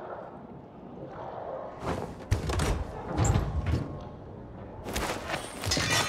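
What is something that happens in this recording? A heavy metal chest lid creaks open.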